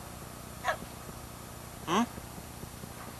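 A small dog whimpers in short, high yelps.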